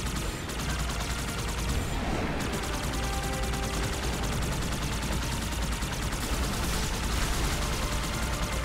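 A hovering vehicle hums and whirs steadily.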